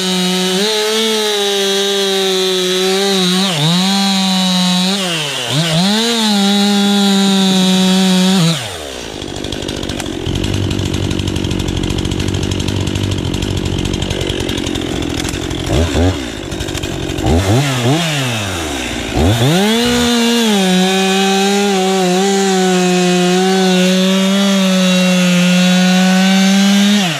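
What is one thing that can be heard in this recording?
A chainsaw engine roars loudly, revving up and down as it cuts through a log.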